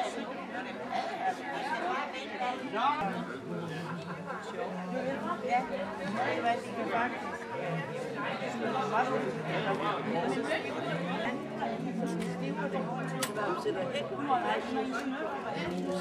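A crowd of elderly men and women chatter all around in a busy room.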